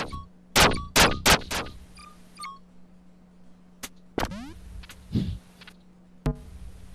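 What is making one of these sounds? Gunshots blast in quick bursts.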